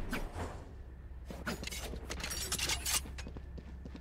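A rifle is drawn with a short metallic clack.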